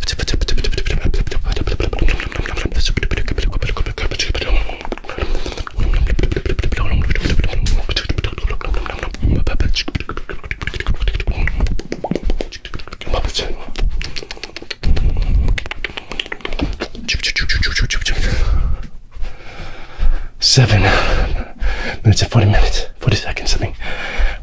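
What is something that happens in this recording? Soft mouth sounds and taps brush against a microphone.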